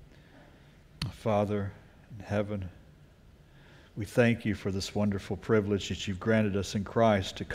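A middle-aged man speaks with emotion into a microphone, with pauses.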